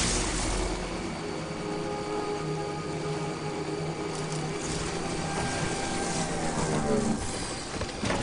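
A motorbike engine hums steadily and then cuts out.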